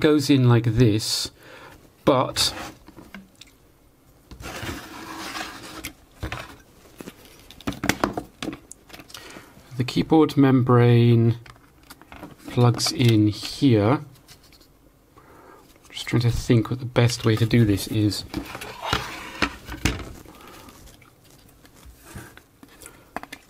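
Hard plastic casing parts knock and click as they are handled.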